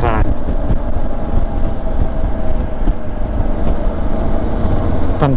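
Wind buffets loudly against a microphone outdoors.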